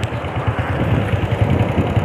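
A motorbike engine putters along a road nearby.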